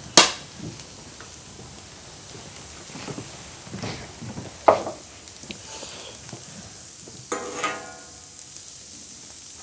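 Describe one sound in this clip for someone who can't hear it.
A metal spatula scrapes and clinks against a hot griddle.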